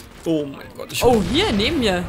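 An explosion booms loudly close by.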